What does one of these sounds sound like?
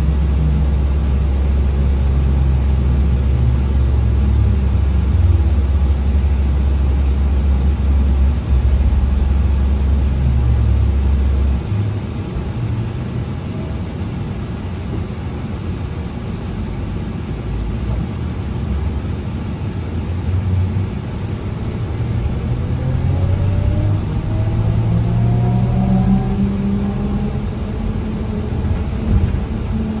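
A bus engine rumbles low and steady from inside the bus.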